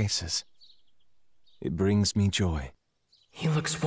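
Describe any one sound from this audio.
A man speaks calmly and gently.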